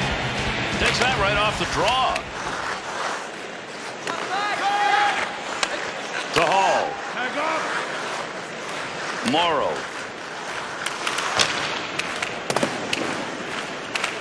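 Hockey sticks slap a puck.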